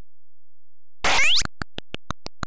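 A falling electronic zap sweeps downward.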